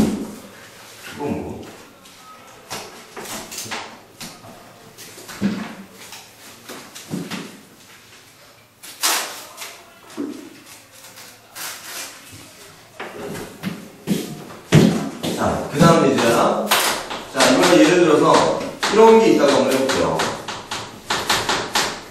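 A man lectures, speaking with animation.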